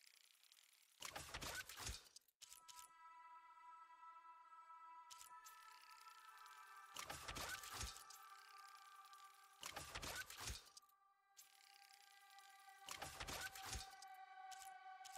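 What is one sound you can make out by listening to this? Short bursts of clattering crafting sounds ring out from a game.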